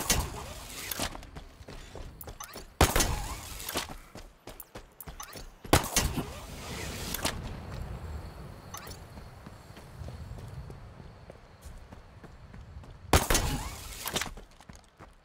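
A futuristic gun fires in loud, short bursts.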